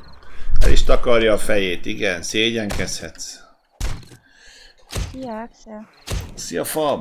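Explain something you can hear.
A knife stabs into flesh with dull thuds.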